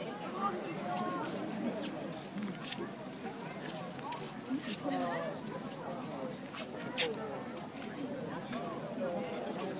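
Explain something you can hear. A small fish flaps and splashes in a shallow basin of water.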